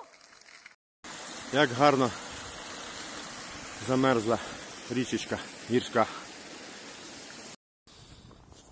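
A stream rushes steadily over rocks.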